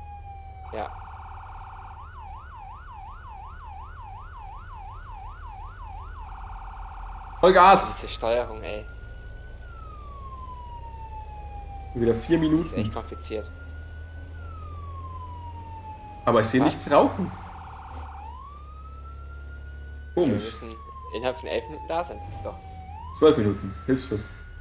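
A fire engine siren wails and warbles.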